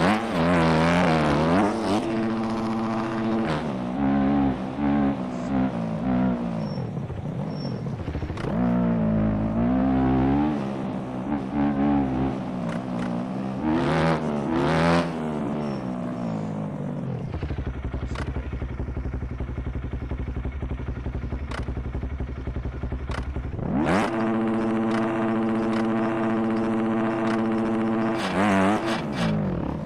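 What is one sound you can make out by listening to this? A motorcycle engine revs up and down loudly.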